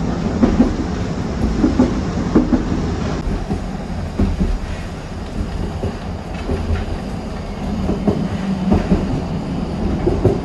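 Wheels clack and knock on the rails.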